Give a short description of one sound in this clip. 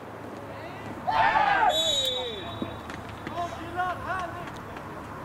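Young men shout loudly across an open field.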